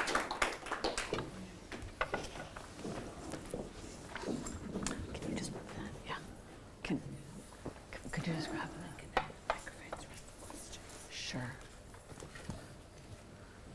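A man speaks softly into a microphone.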